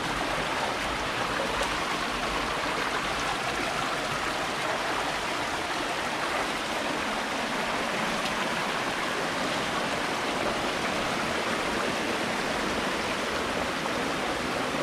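Water rushes and gurgles steadily over rocks.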